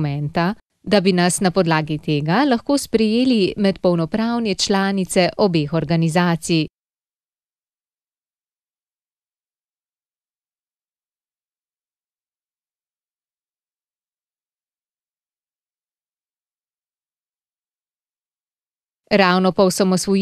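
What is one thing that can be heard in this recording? A woman speaks calmly and clearly, as if reading out.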